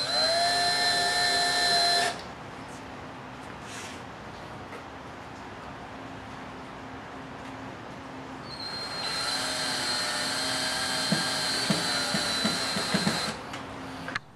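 A cordless drill whirs as it drives in small screws.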